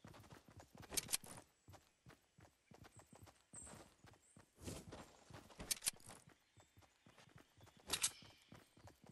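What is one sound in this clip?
A rifle fires a few sharp, loud shots.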